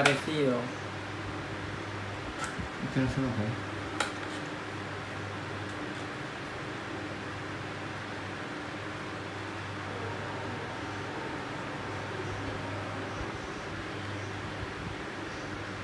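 Cardboard packaging crinkles and tears in hands.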